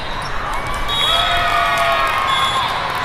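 Voices of the crowd cheer loudly.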